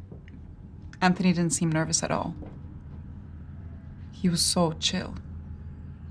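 A young woman speaks softly and emotionally up close.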